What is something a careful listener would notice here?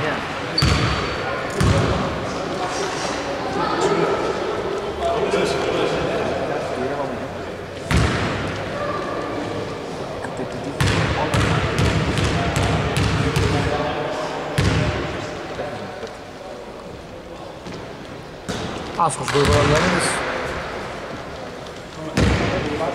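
Men talk and call out in an echoing hall.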